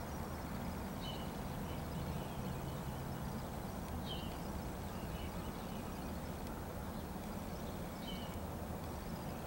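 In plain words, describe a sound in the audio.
A crow caws in short, hoarse calls.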